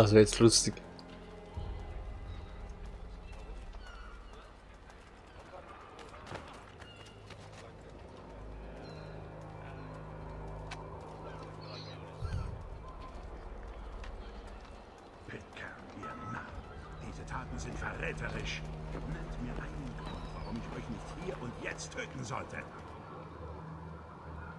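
A young man talks into a microphone close by.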